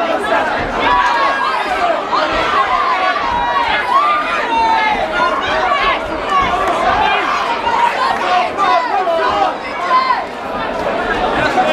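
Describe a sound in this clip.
Boxing gloves thud against each other and on bodies.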